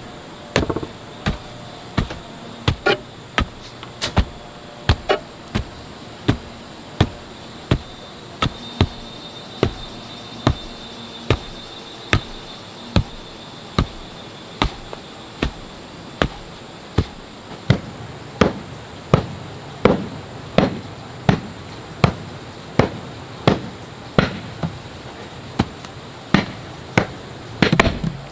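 A wooden rammer thumps down on packed earth again and again in a steady rhythm.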